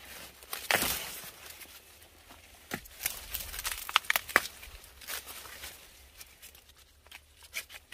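Corn husks and leaves rustle and crackle as hands tear at them.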